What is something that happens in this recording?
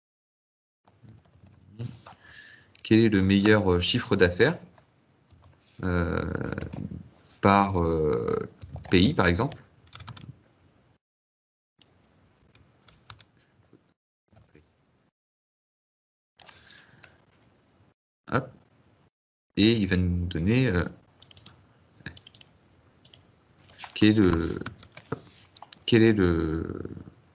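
A man speaks calmly into a close microphone, in bursts with pauses.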